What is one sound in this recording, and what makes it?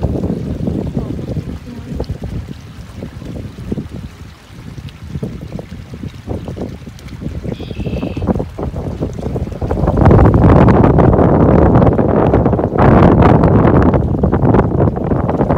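Wind blows hard across the microphone outdoors, growing stronger and gusting.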